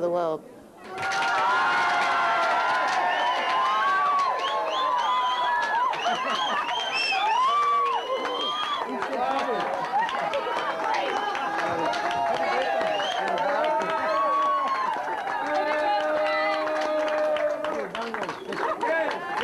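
Young women laugh and squeal with delight.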